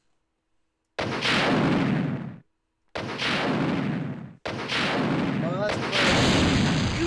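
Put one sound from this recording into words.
Heavy weapon blasts boom loudly, one after another.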